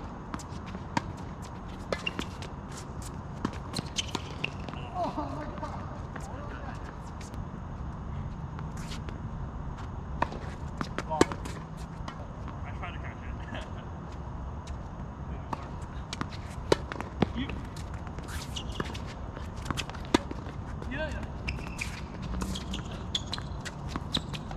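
Tennis balls are struck with rackets in a rally, outdoors.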